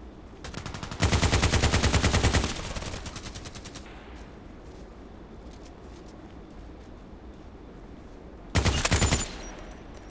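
An automatic rifle fires loud, rapid bursts up close.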